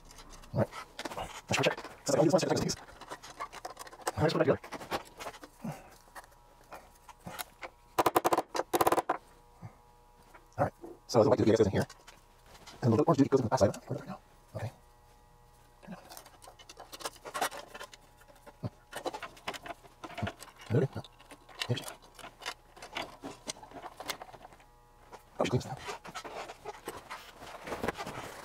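Metal parts clink and scrape together as hands fit them.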